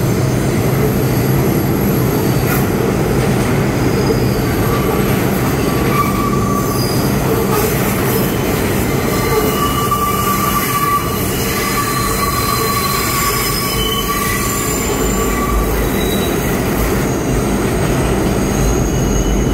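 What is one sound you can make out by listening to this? Train wheels clatter over the rail joints.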